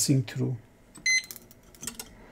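An electronic device beeps briefly.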